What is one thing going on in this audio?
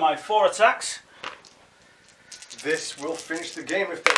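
Dice rattle in a plastic bowl.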